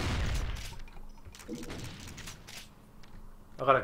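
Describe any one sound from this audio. A shotgun fires with loud blasts.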